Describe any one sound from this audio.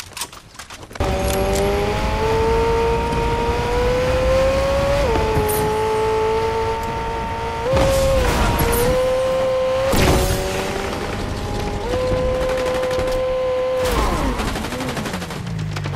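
A car engine hums steadily at high speed, shifting pitch as it brakes and accelerates.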